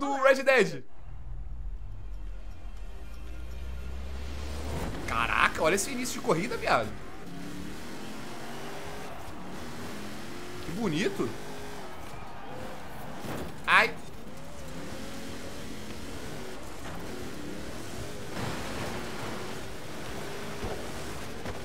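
A car engine roars as a car races.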